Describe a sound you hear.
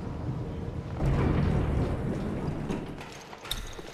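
Heavy metal doors rumble as they slide open.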